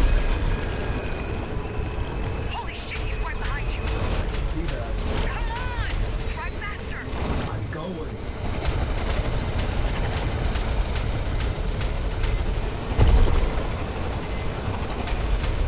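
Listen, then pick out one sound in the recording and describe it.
A hover vehicle's engine roars steadily at speed.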